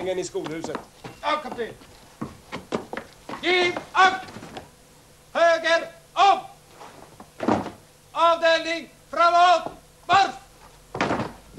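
A man shouts orders loudly outdoors.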